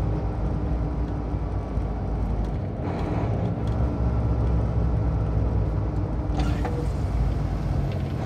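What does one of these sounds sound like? A vehicle's engine drones steadily.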